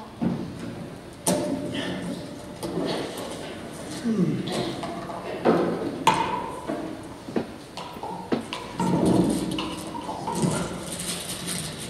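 A young man talks to himself.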